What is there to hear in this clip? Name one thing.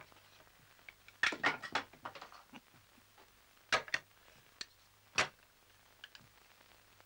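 Dishes clink softly on a table.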